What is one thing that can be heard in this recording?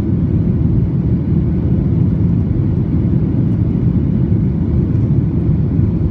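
Jet engines roar steadily in a low, constant rumble from inside an airliner cabin.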